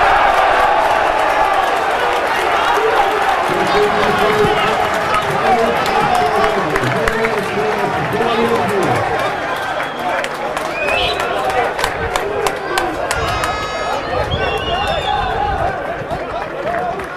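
A stadium crowd cheers and chants loudly outdoors.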